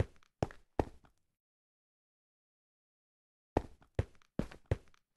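Footsteps thud on a hard floor in a quick series.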